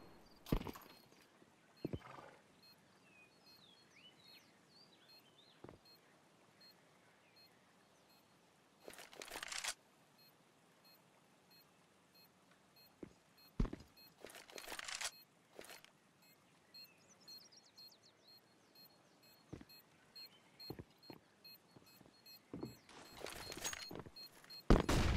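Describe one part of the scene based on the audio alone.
Footsteps tap on hard ground at a quick pace.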